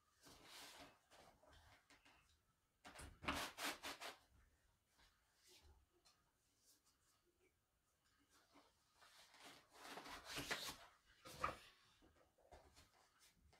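Stiff fabric rustles and flaps close by as it is handled.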